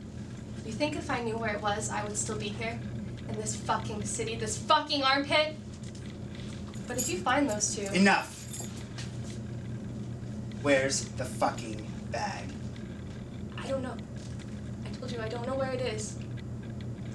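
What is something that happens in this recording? A young woman speaks tensely close by.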